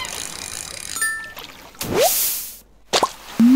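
A bright chime rings out as a fish is landed.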